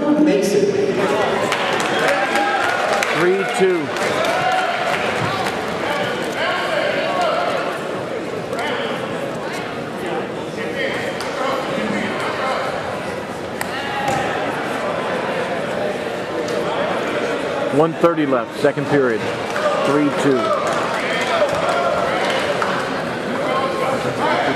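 Wrestlers' shoes squeak and thud on the mat.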